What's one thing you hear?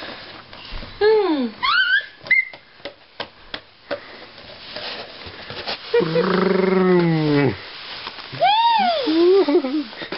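A baby squeals and babbles with high-pitched cries.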